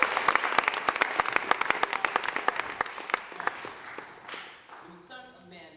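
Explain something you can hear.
An audience claps loudly in a hall, then the applause fades.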